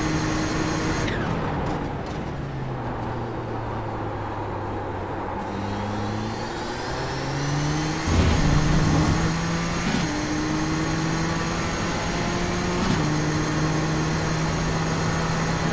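A racing car engine roars, dropping in pitch as it slows and then climbing as it speeds up through the gears.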